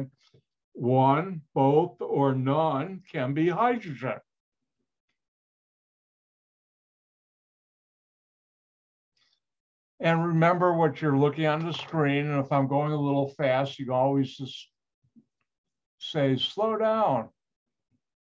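An elderly man speaks calmly through an online call, in short bursts with pauses.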